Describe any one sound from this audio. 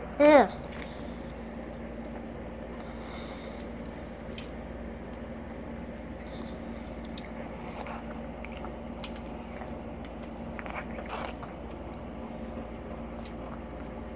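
A plastic cup crinkles and taps in a hand.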